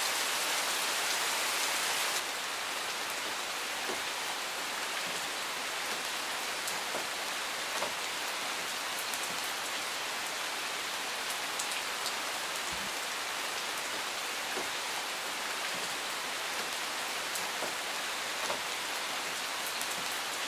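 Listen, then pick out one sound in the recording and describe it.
Steady rain patters on leaves and gravel outdoors.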